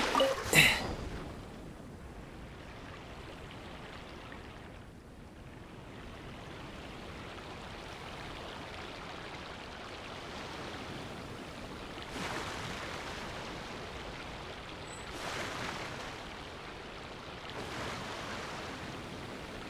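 Water rushes steadily along a moving boat's hull.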